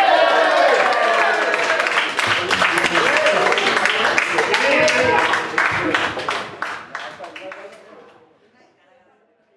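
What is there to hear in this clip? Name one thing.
A small band plays a lively song, then fades out.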